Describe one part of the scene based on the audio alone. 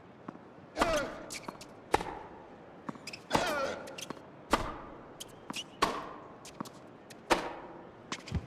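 A tennis ball is struck back and forth with sharp pops of a racket.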